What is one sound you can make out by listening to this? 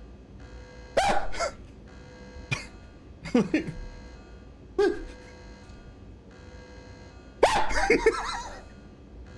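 A man laughs close to a microphone.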